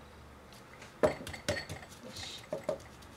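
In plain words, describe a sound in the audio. Hands pat and press raw meat on a cutting board.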